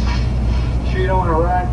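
An older man speaks nearby.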